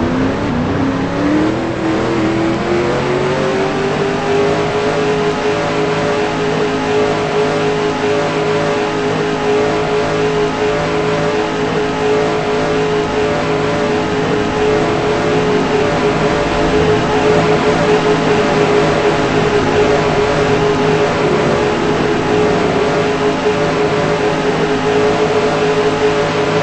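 A race car engine roars, rising in pitch as it speeds up, then holds a steady high drone.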